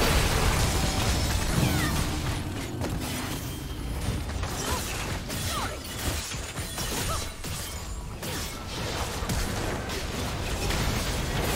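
Game spell effects crackle and burst in a busy fight.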